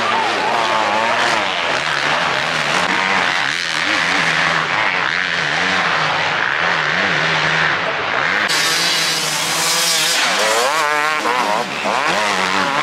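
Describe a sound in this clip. A dirt bike engine roars and revs up and down close by.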